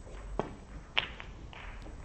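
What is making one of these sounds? Snooker balls clack against each other.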